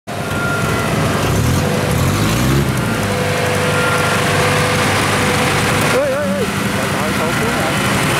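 A harvester engine rumbles steadily close by.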